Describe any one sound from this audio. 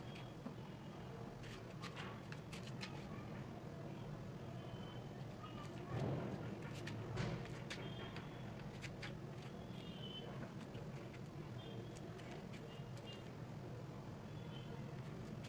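Wet clothes rustle and flap.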